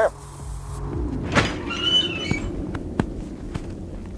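A heavy metal door slides open.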